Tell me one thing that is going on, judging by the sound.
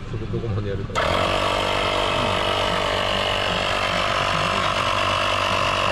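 A small electric air compressor switches on and runs with a loud, steady buzzing hum.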